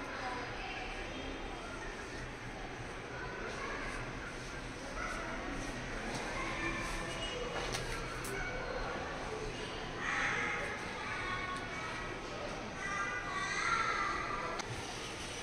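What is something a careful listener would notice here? A brush rustles through long hair.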